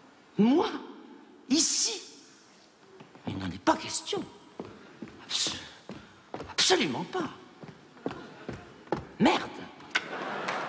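A woman speaks dramatically on a stage, in an echoing hall.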